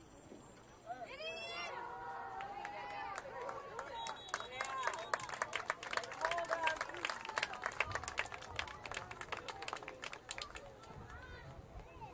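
Young men on a sideline cheer and shout loudly.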